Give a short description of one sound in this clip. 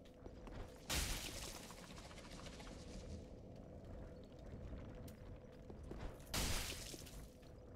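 A heavy sword strikes with a loud thud.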